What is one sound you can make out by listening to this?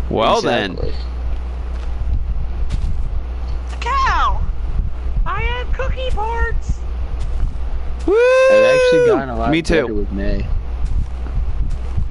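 Leaves rustle and crunch as blocks are broken.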